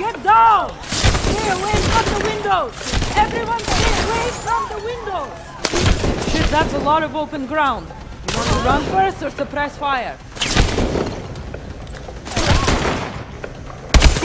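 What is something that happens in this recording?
A woman shouts urgent warnings close by.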